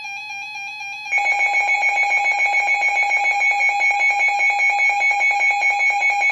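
A weather radio sounds a steady, high alert tone.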